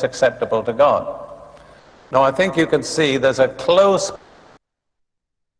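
An elderly man preaches through a microphone with emphasis.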